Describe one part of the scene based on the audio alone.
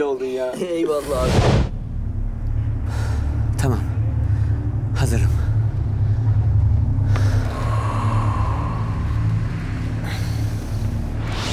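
Wind rumbles loudly outdoors.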